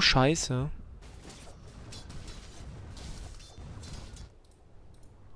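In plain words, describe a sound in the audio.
Weapons clash and spells burst in a game fight.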